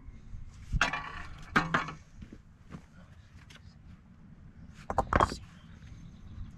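Stones scrape and clunk as they are dug out of dry soil.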